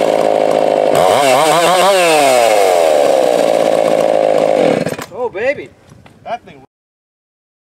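A chainsaw revs up and down in short bursts.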